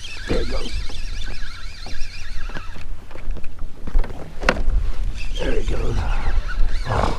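Wind blusters over open water.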